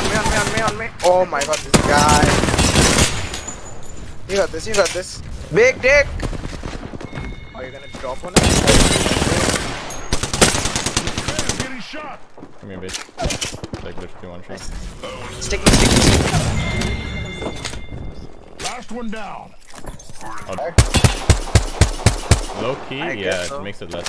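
Gunfire from a game rattles in rapid bursts.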